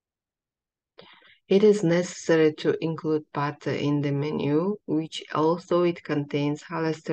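A young woman speaks calmly and steadily, close to a microphone.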